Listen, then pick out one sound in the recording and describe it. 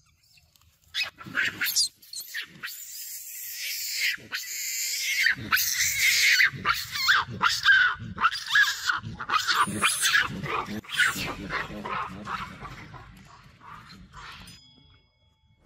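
A monkey screeches loudly close by.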